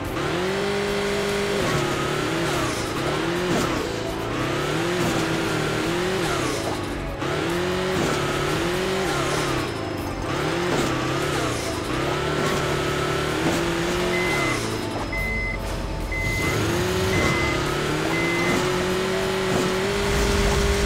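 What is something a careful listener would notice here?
A game vehicle's engine revs up and down throughout.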